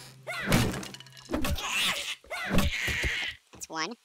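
A wooden club thuds hard against a body several times.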